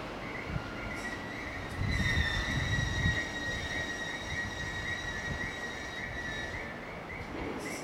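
Train brakes squeal with a steady high whine.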